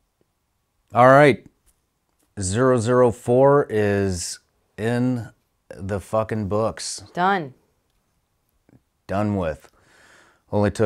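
A man speaks calmly and with animation, close to a microphone.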